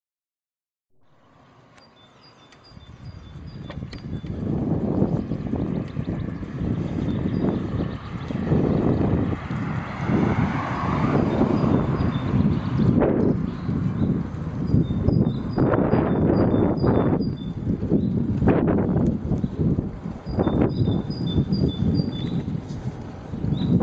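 Tyres roll steadily on a paved path.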